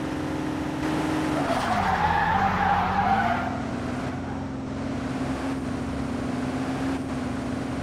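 A car engine hums steadily and rises as the car speeds up.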